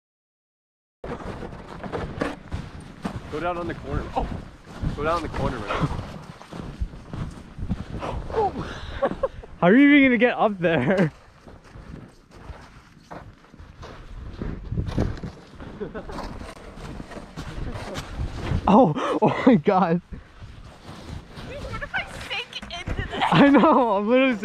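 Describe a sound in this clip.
Boots crunch through deep snow.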